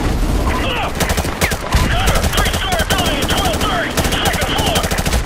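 Rapid gunfire bursts out in loud, echoing shots.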